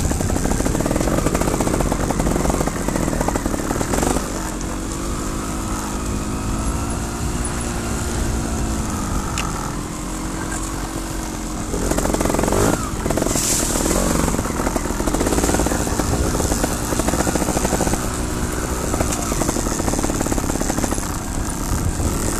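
A dirt bike engine revs and roars up and down.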